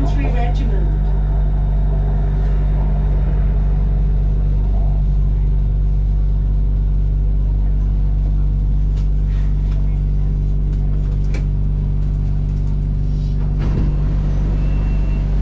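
A train rolls along the track and slows to a stop.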